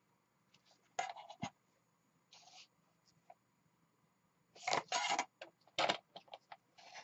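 A metal ruler knocks and slides on a tabletop.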